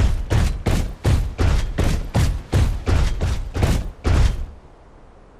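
A heavy gun fires in rapid, booming bursts.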